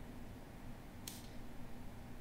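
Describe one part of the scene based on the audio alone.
A game piece clicks down once onto a board.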